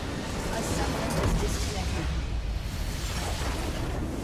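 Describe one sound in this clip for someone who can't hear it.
A building in a game explodes with a deep boom.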